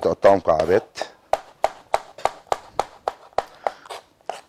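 A knife chops quickly on a cutting board.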